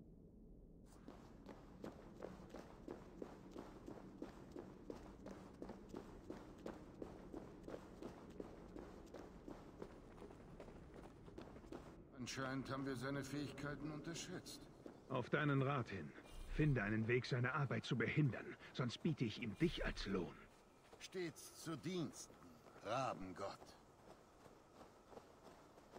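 Footsteps crunch steadily on earth and stone.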